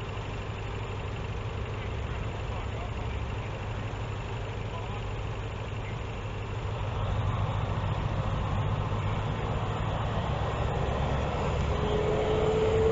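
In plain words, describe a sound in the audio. A diesel locomotive engine rumbles as a train approaches slowly, growing louder.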